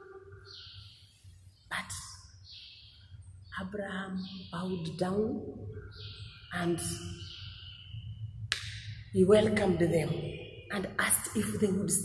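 A woman speaks with animation into a microphone, close by.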